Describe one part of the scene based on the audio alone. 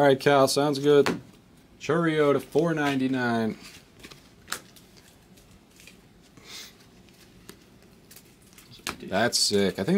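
Trading cards rustle and click as hands flip through them.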